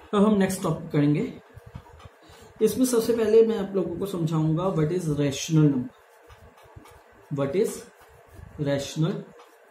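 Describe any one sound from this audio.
A pen scratches on paper.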